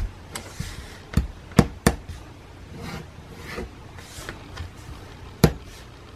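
Fingers tap and press on paper.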